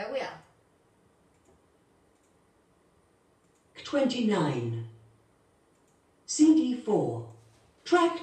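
A woman speaks calmly nearby, in short phrases with pauses.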